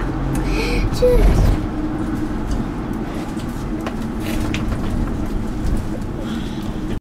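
A vehicle engine hums steadily from inside.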